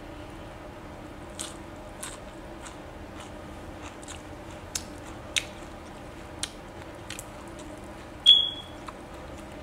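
A woman chews food with wet, smacking sounds close to a microphone.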